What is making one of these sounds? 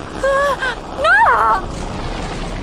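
A woman screams in alarm.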